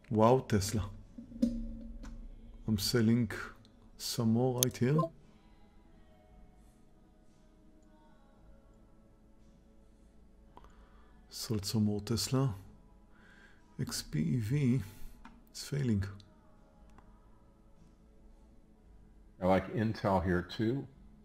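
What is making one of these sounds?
A middle-aged man talks calmly and close to a microphone, with pauses.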